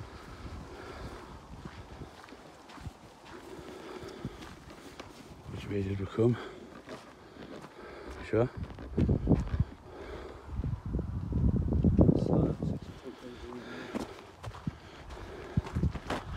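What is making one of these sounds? Leaves and grass rustle as they brush past.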